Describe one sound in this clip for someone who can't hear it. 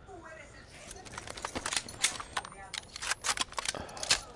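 A rifle fires in quick bursts of shots.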